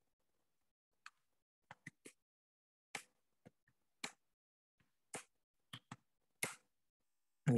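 Computer keys click sharply a few times.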